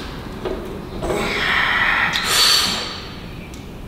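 A young man breathes out hard with effort.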